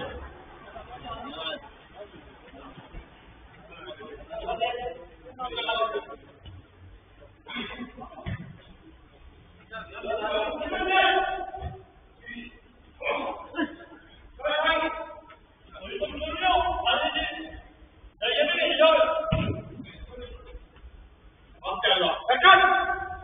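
Men shout and call to each other in a large echoing hall.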